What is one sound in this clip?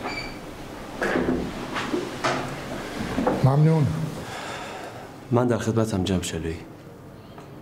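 A young man speaks calmly.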